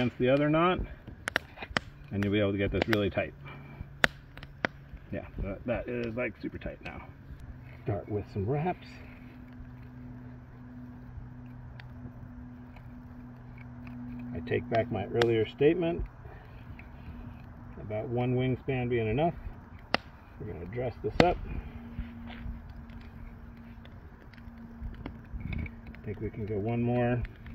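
Wooden sticks knock and rub together close by.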